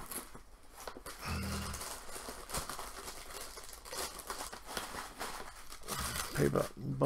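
Cardboard packaging rustles in a man's hands.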